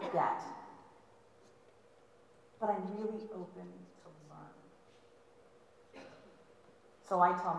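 A woman speaks with animation through a microphone in a large echoing hall.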